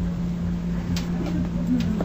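A soft plush toy rustles as a hand grabs it.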